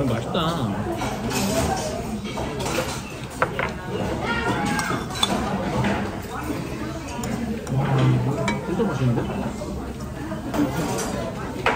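Diners chatter in the background.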